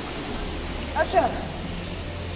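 A man shouts out loudly.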